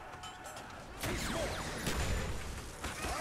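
A gun fires several rapid shots.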